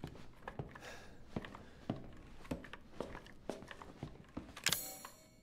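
Footsteps thud steadily on a wooden floor indoors.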